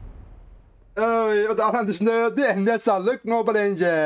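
A man speaks loudly and with animation into a microphone, close by.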